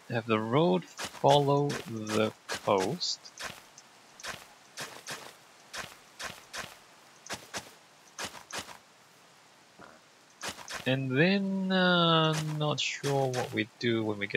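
A shovel digs into dirt with repeated crunching knocks.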